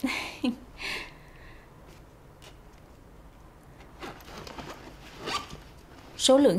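A young woman rummages through a bag, rustling.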